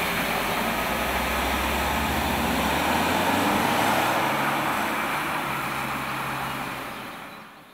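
A car engine hums as it climbs a winding road and fades away.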